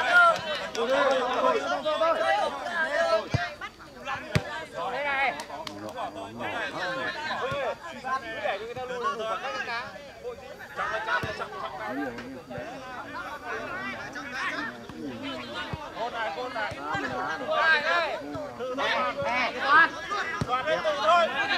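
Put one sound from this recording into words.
Men shout to each other across an open outdoor pitch.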